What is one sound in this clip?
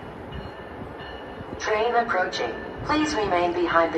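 A train rumbles closer along the tracks.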